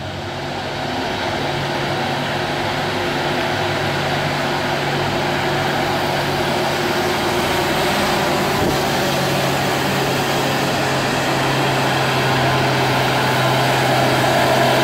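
Heavy truck engines rumble steadily, growing louder as the trucks approach.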